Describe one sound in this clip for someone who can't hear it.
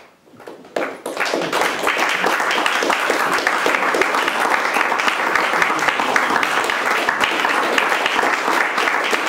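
An audience claps loudly in a room.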